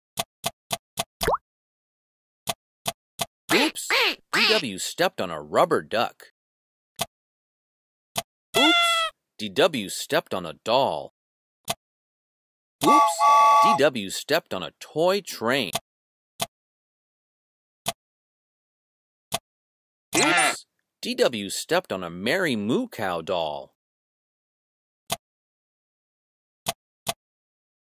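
Short electronic blips sound as a game piece moves step by step.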